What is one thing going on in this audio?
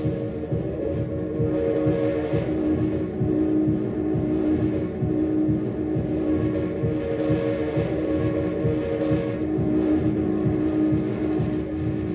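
Electronic music with a fast, pulsing low beat and steady droning tones plays loudly.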